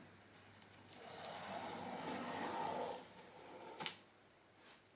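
A cardboard box rustles and scrapes under a hand.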